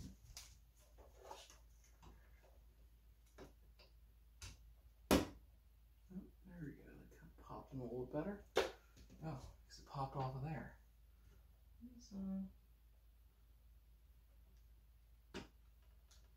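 Small computer parts click and tap as they are handled.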